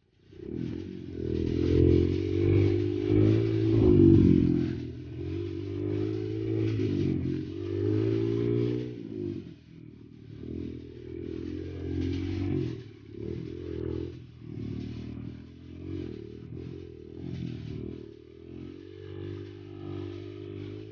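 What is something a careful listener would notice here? A motorcycle engine revs and chugs up close, rising and falling in pitch.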